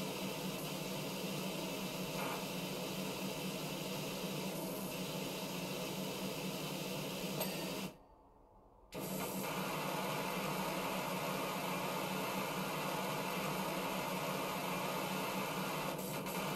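A pressure washer sprays a steady, hissing jet of water.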